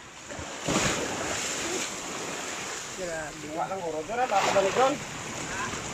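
Small waves lap and splash against the shore.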